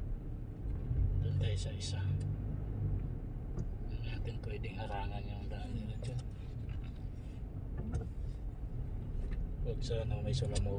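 A car engine rumbles low and steady from inside the moving car.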